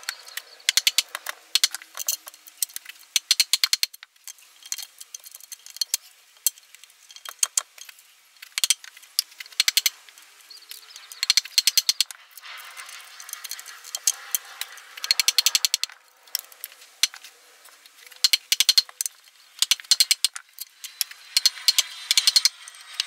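A wooden mallet knocks sharply on a chisel, in quick bursts of blows.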